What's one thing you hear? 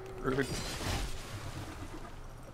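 A heavy blow strikes an armoured warrior with a loud crash.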